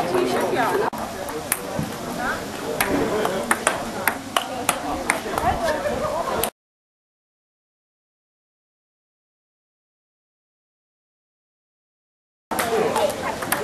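A table tennis ball clicks on a bat and table in quick rallies.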